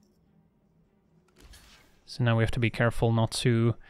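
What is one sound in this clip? Soft digital chimes and clicks play as game cards move.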